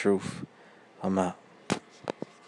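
A man speaks briefly up close.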